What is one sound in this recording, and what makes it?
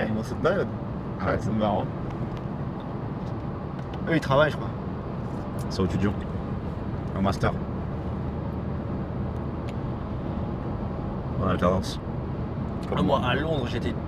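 A second young man answers and laughs.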